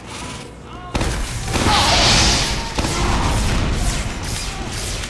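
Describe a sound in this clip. A loud blast roars close by.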